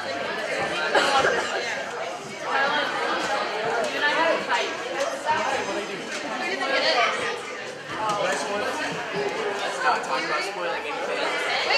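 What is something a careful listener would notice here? Many people chatter at once in an echoing hall.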